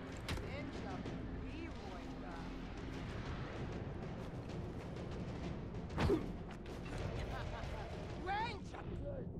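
Hands scrape and grip on rough rock during a climb.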